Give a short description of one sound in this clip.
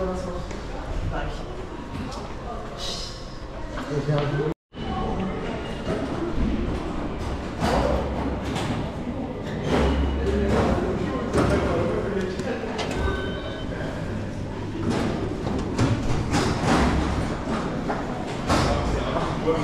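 Footsteps echo in a tiled underground passage.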